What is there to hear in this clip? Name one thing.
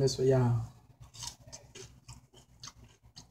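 A woman crunches on food while chewing.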